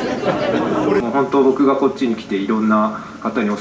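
A man speaks calmly into a microphone over a loudspeaker.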